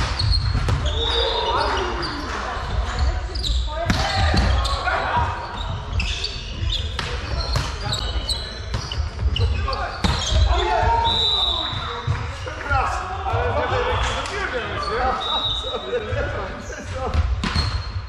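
Players' shoes squeak on the hard floor.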